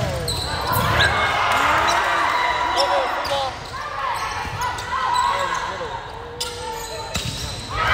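A volleyball thumps off a player's arms.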